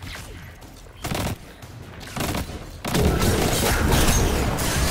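Rapid gunshots fire in bursts.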